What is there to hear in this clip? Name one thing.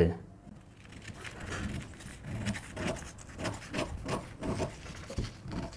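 Paper rustles as hands handle it.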